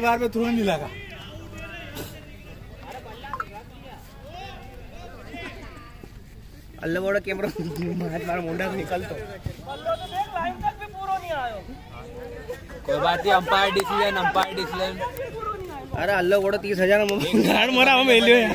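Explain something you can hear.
Young men shout and call out to each other outdoors in the open.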